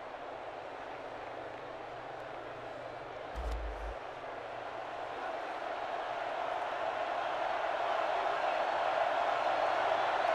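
A large stadium crowd roars steadily and grows louder.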